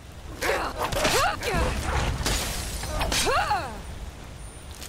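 A beast yelps and howls in pain.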